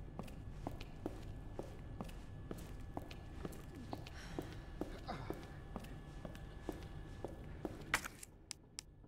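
Footsteps tap steadily on a hard floor in a large echoing hall.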